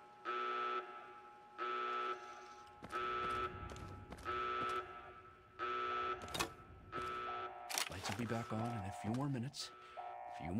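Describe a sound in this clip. Footsteps thud on a hard metal floor.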